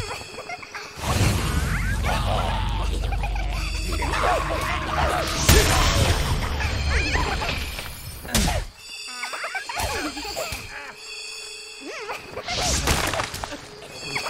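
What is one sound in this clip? Sword blows clash in a fight.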